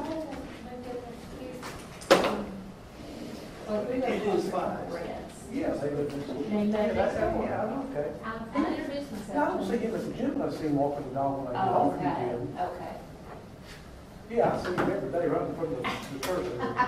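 Several adults talk calmly with each other at a distance.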